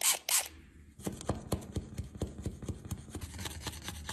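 A plastic scraper scrapes across a plastic tray.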